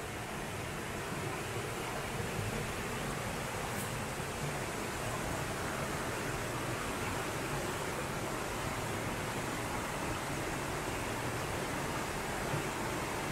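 A stream rushes steadily nearby.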